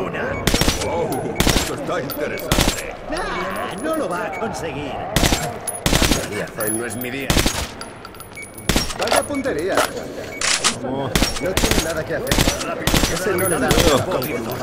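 A rifle fires single loud shots that echo.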